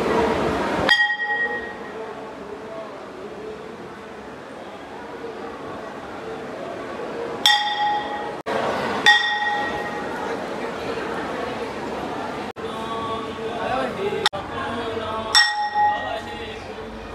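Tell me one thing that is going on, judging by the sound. A bell rings out sharply a few times, each ring fading.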